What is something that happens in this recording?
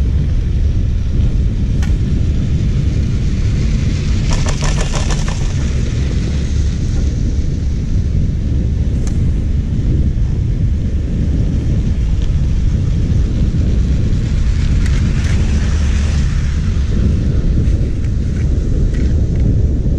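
Wind rumbles steadily past the microphone.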